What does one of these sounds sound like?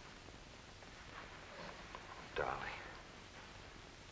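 A man speaks quietly in reply.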